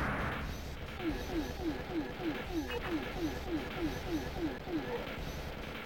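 A rapid electronic warbling repeats steadily in an arcade game.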